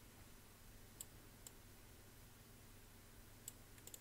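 Short sharp clicks of game effects sound now and then.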